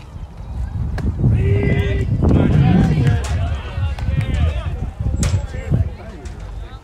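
Young men call out across an open field at a distance.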